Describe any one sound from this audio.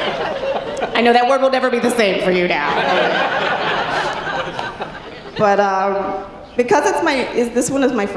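A woman speaks with emotion through a microphone on a stage.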